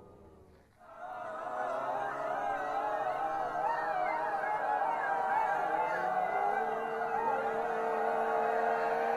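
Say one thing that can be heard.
A woman sings a sustained melody up close.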